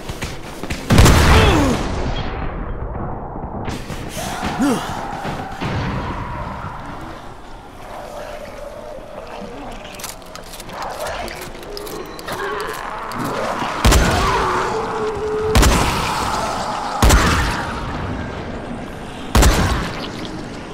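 A shotgun fires loud, booming blasts several times.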